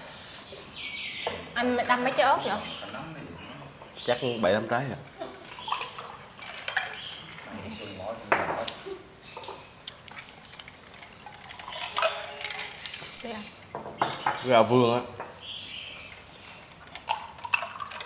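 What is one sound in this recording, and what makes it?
Dishes and chopsticks clink on a table.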